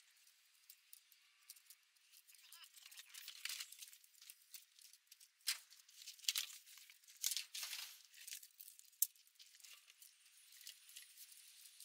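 Plastic battery box lids clatter and knock as they are lifted off.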